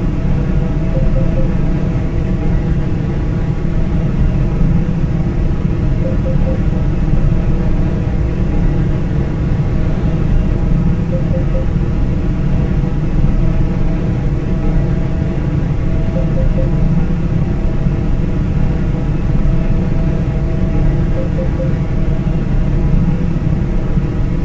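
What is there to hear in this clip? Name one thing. Tyres rumble on an asphalt road.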